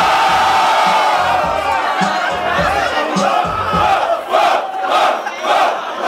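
A crowd of young people cheers and shouts.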